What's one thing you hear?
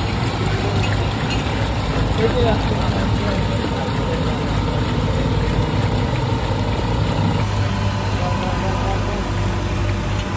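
Water pours and splashes into a bucket.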